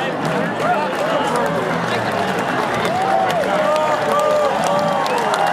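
A large crowd cheers and whistles in the distance.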